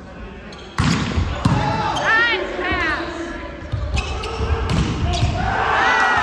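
Men shout and call out during play in a large echoing gym.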